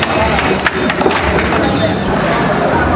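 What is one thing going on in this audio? Pucks clack against the sides of air hockey tables.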